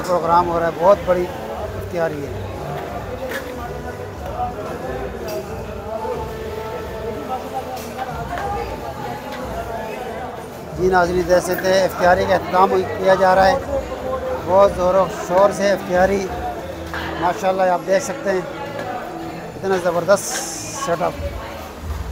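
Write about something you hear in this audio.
Men talk nearby with animation.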